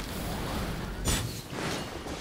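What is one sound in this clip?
A fiery blast crackles and bursts.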